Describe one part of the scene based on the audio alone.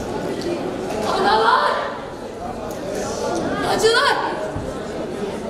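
A young woman cries out loudly and with anguish in an echoing hall.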